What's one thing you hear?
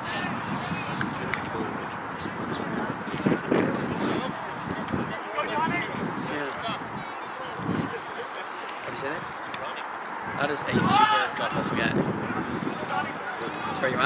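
Young men talk and call out nearby, outdoors.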